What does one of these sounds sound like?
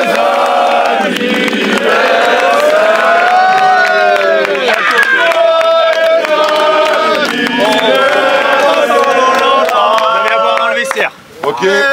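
A crowd of people claps hands in rhythm.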